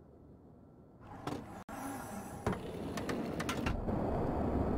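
An aircraft cabin door unlatches with a clunk and swings open.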